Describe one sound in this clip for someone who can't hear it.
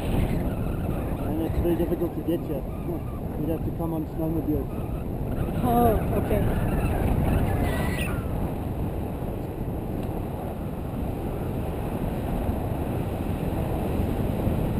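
Wind roars steadily against a microphone outdoors.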